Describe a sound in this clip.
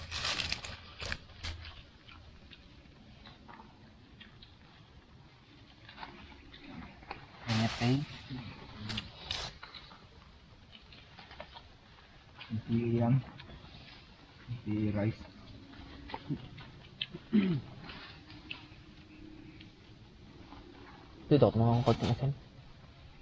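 Leaves crinkle as hands unwrap food.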